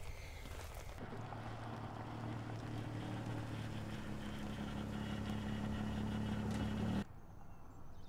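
A car engine hums steadily as a car pulls in.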